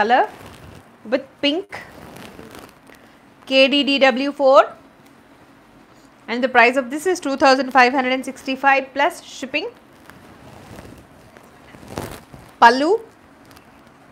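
A woman speaks clearly and close by, presenting with animation.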